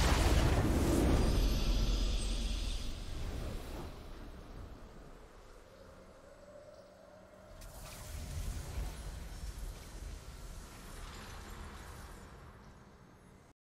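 A triumphant fanfare plays as the match ends.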